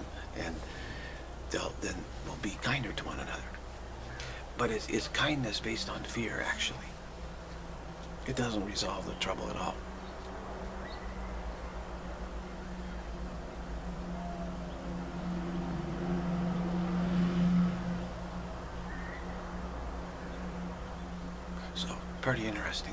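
A middle-aged man speaks calmly and close up, with pauses.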